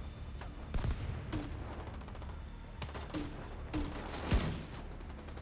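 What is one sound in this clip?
A rifle fires loud, sharp shots that echo briefly.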